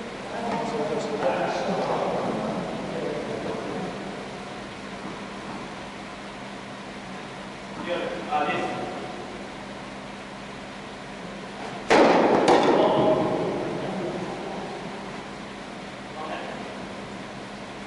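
A man calls out loudly across the court.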